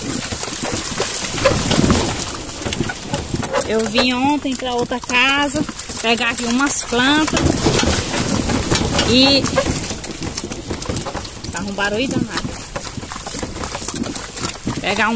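A horse-drawn cart rattles and creaks along a rough track.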